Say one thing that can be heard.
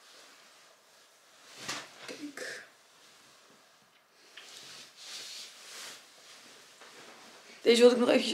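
Fabric rustles as a jacket is put on and adjusted.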